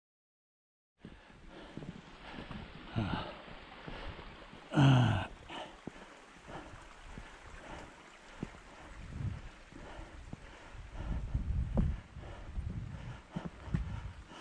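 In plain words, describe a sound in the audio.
Footsteps crunch on a stony path outdoors.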